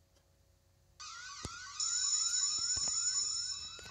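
An alarm bell rings loudly and steadily.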